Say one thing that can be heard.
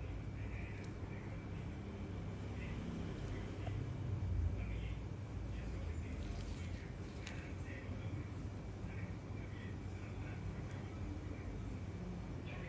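A small blade scrapes softly against skin.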